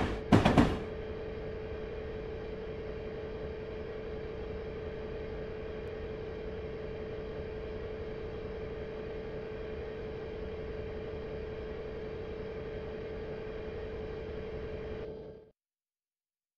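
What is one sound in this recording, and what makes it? A locomotive engine drones steadily.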